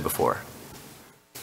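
A man speaks briefly into a microphone.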